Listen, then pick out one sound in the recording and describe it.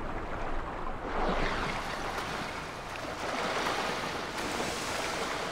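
Water splashes and laps as swimmers surface.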